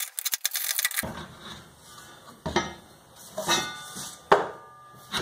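Metal parts clank and knock against a metal frame.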